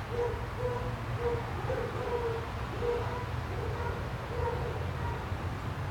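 A dog barks over and over nearby.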